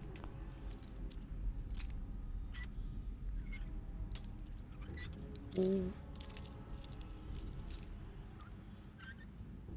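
A lock pick scrapes and clicks inside a lock.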